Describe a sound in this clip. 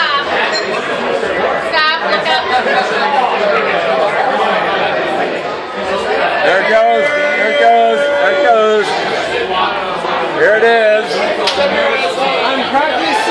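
A crowd of adults chatters loudly all around.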